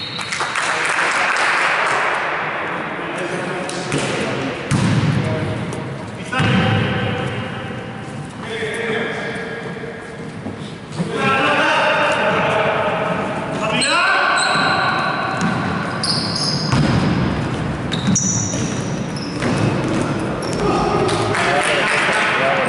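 Sneakers squeak sharply on a wooden court in a large echoing hall.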